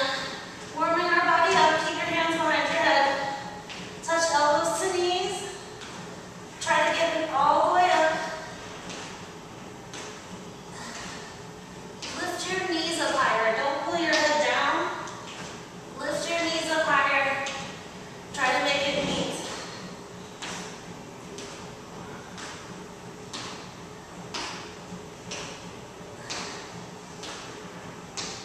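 Feet step and tap lightly on a wooden floor.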